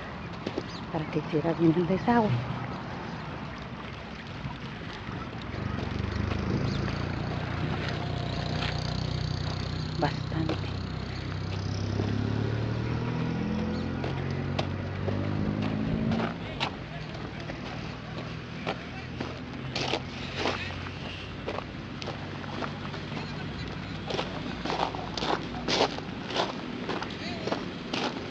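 Water flows gently along a narrow channel.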